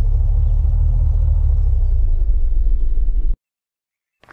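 A car engine rumbles loudly while driving.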